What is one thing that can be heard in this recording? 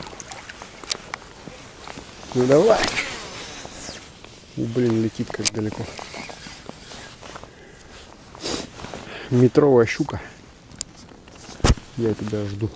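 A fishing reel clicks.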